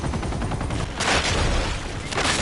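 An explosion bursts and debris clatters.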